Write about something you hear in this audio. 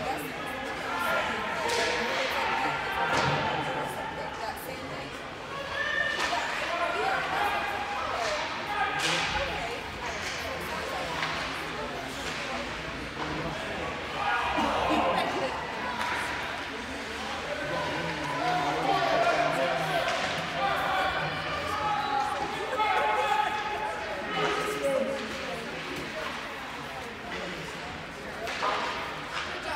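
Spectators chatter nearby in a large echoing arena.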